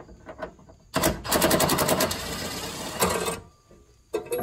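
A power tool whirs briefly in a loud burst.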